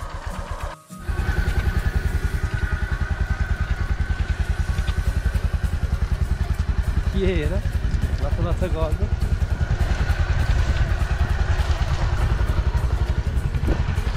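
A motorcycle engine roars and strains as its wheels churn through mud.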